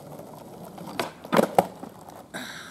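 A skateboard clatters loudly as a trick lands on asphalt.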